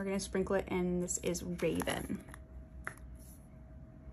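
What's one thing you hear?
A plastic jar lid twists and clicks open.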